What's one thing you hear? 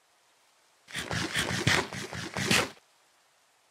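Wooden blocks crack and break in quick knocks.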